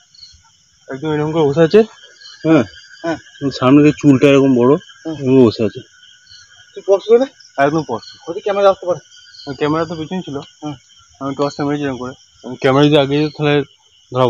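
A young man talks nearby, in short bursts.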